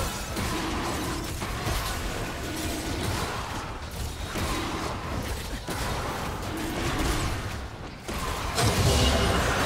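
Magic blasts and sword strikes clash in a hectic fantasy battle.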